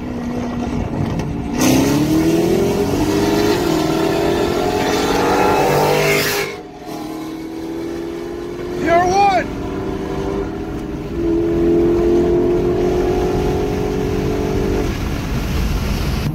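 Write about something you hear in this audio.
A car engine roars close by, revving hard and rising in pitch through the gears.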